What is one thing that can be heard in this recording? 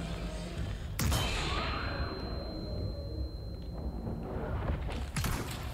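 A pistol fires.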